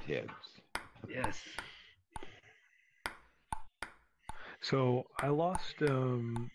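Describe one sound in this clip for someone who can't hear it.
A table tennis ball clicks sharply against paddles and the table in a quick rally.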